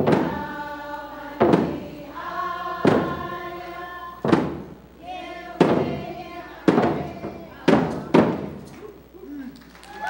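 A group of elderly women and children sings loudly together.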